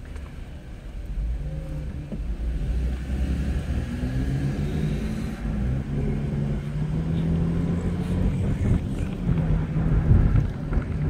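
A car engine revs up and climbs in pitch as the car pulls away.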